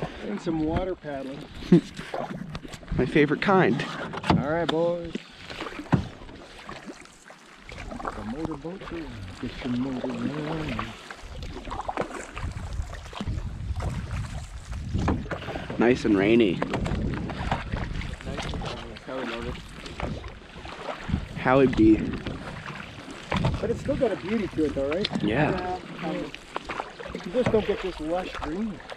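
Paddles dip and swish through calm water.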